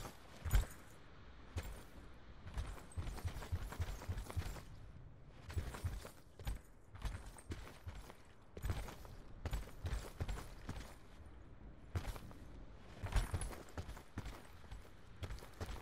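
Footsteps crunch on dirt and rock.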